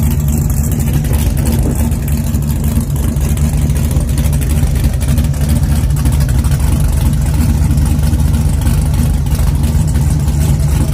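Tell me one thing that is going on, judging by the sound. A big engine idles with a loud, rough, rumbling lope close by.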